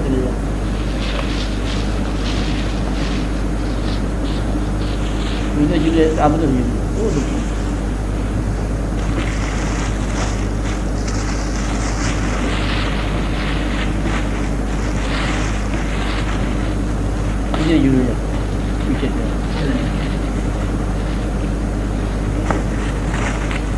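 An elderly man speaks calmly and slowly, heard through an old, hissy recording.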